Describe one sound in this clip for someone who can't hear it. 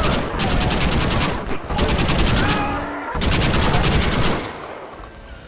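A gatling gun fires rapid bursts of shots.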